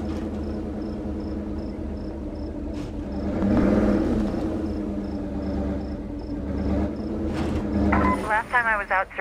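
A truck engine rumbles steadily as the vehicle drives and then idles.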